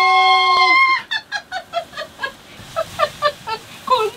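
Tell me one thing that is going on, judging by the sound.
A middle-aged woman laughs in bursts, close by.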